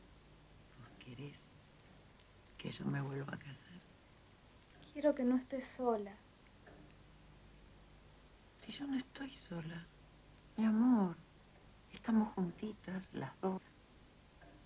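A woman speaks warmly and calmly nearby.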